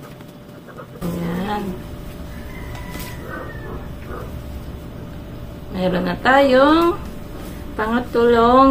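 A young woman talks close by with animation.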